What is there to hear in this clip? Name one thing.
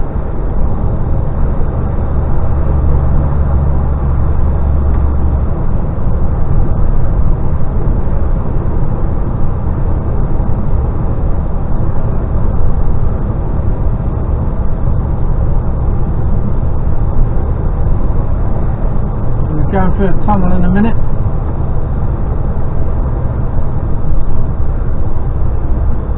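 A vehicle's engine drones steadily as it drives along a motorway.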